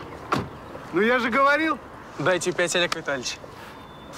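A young man exclaims loudly nearby.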